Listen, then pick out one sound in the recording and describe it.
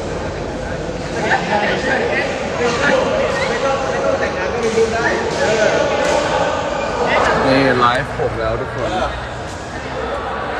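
A young man talks close up, with animation.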